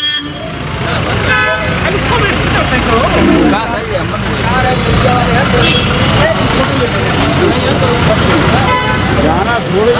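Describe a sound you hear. A bus engine hums on a street.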